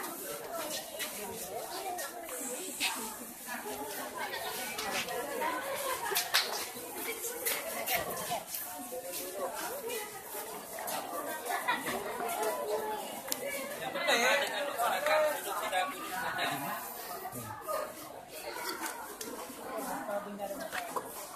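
Several teenagers talk and chatter together nearby, outdoors.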